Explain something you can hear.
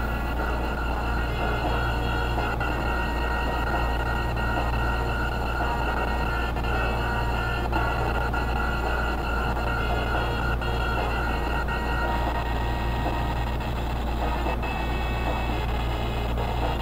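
Retro video game music plays steadily.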